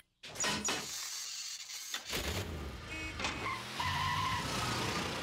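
A small cart engine sputters and rumbles away.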